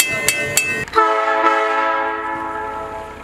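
A train horn blows loudly and fades away.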